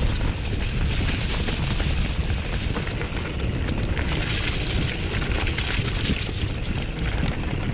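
Wind rushes loudly past, buffeting steadily.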